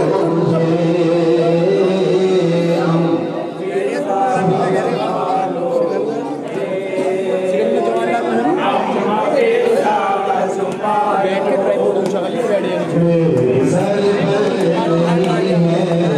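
A group of young men chant along in unison.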